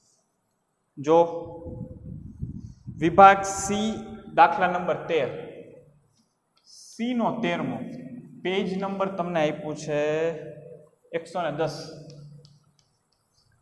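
A young man speaks calmly, as if teaching.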